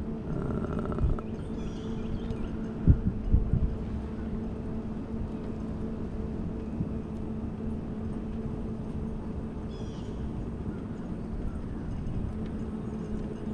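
An electric mobility scooter motor whines steadily as it rolls along.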